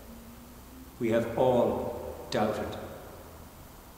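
An elderly man speaks calmly into a microphone in a room with a slight echo.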